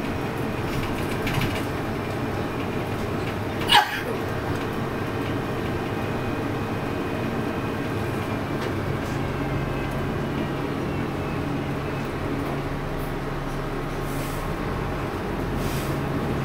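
A bus engine rumbles steadily from inside the bus as it drives along.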